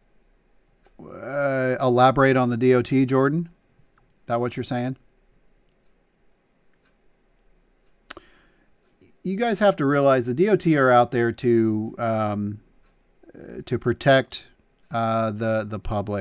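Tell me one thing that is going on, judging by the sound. A man speaks calmly and close into a microphone, in short bursts with pauses.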